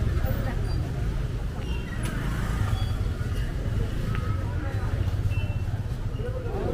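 A busy crowd murmurs and chatters outdoors.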